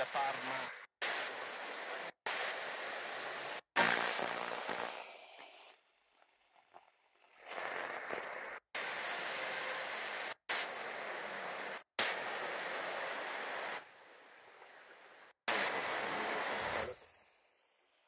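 A small radio hisses loudly with static between stations.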